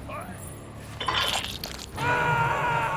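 A body thuds onto a metal hook.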